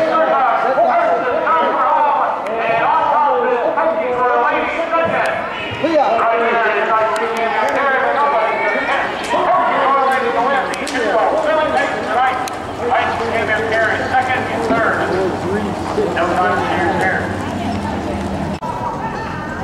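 Men and women talk and call out nearby in an outdoor crowd.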